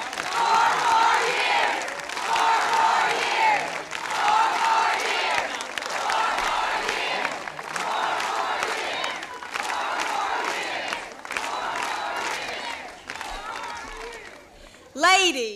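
A crowd applauds and cheers outdoors.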